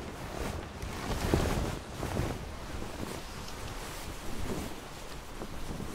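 Rough sea waves surge and crash.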